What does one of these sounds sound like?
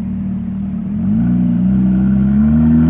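A sports car engine revs up as the car creeps forward.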